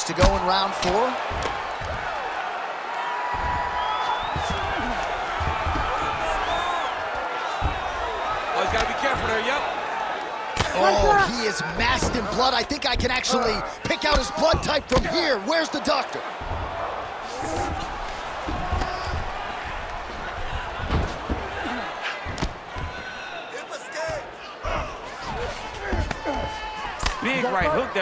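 Punches thud repeatedly against a body.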